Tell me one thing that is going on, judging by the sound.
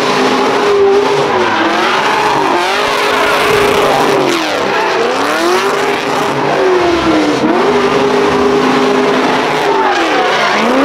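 Tyres screech as a car spins on asphalt.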